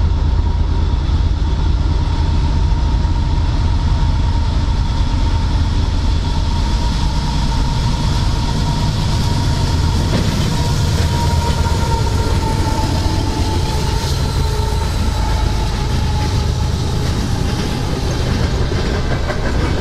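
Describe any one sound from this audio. Diesel locomotives rumble loudly as a freight train approaches and passes close by.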